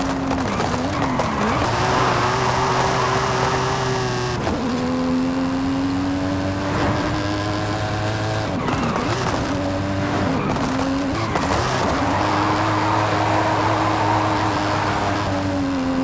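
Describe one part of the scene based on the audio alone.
A powerful car engine roars, revving high and dropping briefly at each gear change.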